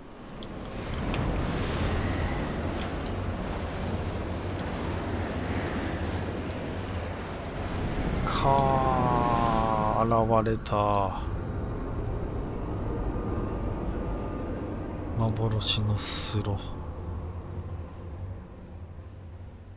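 Wind howls steadily through a snowstorm.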